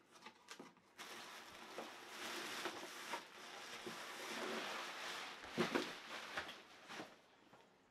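Plastic wrapping rustles and crinkles as it is pulled from a cardboard box.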